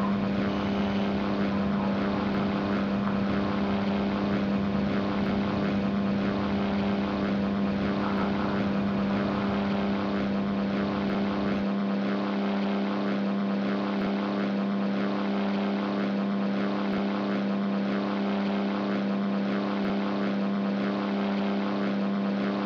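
Wind rushes past an aircraft canopy.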